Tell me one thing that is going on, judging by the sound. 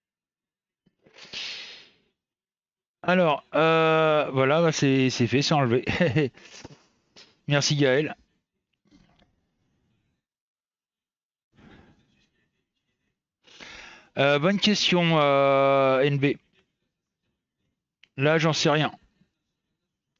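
A middle-aged man speaks with animation into a headset microphone, in short bursts with pauses.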